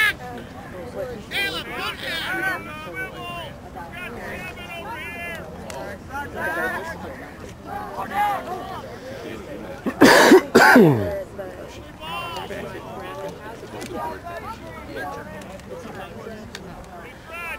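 Young boys shout and call out across an open field.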